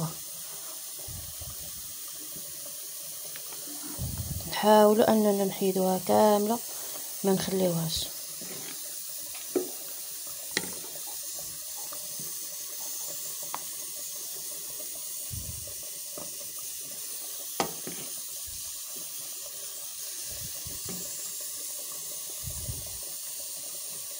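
Thick sauce bubbles and pops in a pot.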